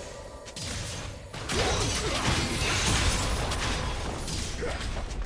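Magic blasts and weapon hits crackle and burst in a fast game battle.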